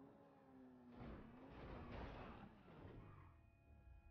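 A car crashes and tumbles with loud thuds.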